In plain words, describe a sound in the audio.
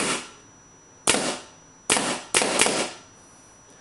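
A toy gun fires with short electronic blasts.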